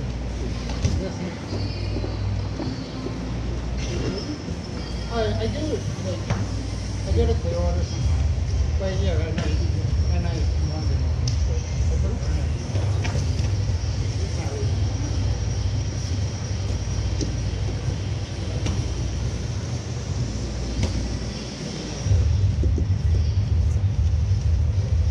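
Bodies thump and shuffle on padded mats.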